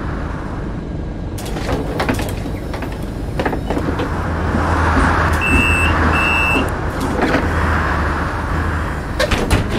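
A bus door hisses open and shut.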